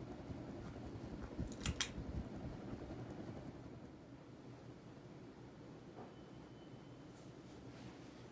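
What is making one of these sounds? A ceiling fan whirs steadily.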